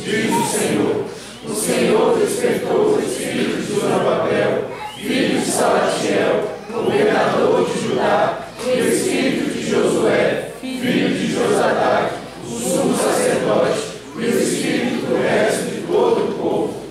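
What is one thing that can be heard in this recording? A young woman speaks steadily into a close microphone, as if reading out.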